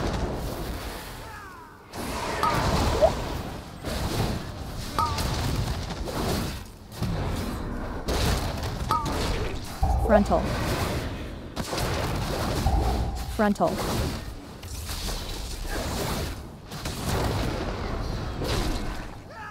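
Spell effects crackle and boom in a game battle.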